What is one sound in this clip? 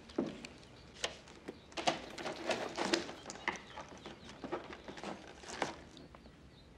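A briefcase knocks and clatters as it is handled.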